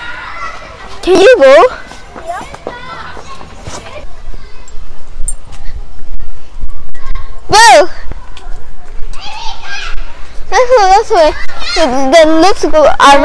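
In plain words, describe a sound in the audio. A young girl squeals and shouts close by.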